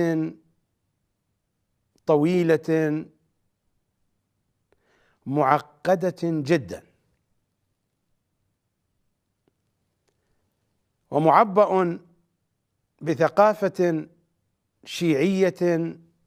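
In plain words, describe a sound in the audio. A middle-aged man speaks calmly and deliberately into a microphone, in short phrases with long pauses.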